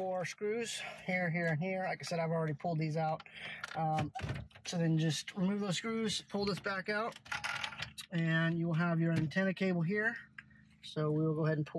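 Plastic trim clicks and rattles as a car radio is pulled loose.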